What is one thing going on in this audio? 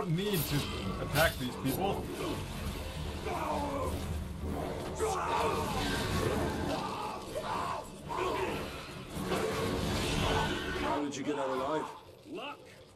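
A large beast growls and snarls.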